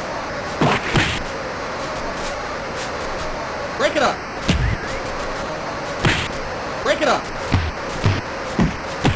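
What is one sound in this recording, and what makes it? Video game punches land with thuds.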